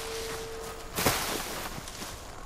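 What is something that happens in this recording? Leafy bushes rustle as something pushes through them.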